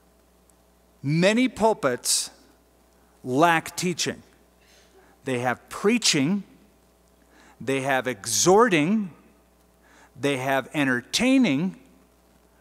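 A middle-aged man speaks calmly and slowly into a microphone, with pauses between phrases.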